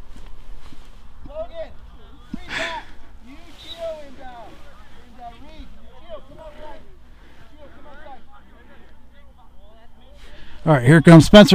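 Players call out to each other across an outdoor field.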